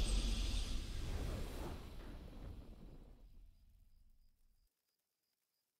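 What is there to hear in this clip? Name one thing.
A triumphant game fanfare booms out and fades away.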